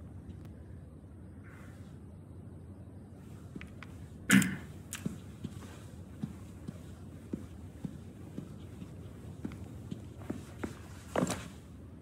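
Footsteps thud on a floor.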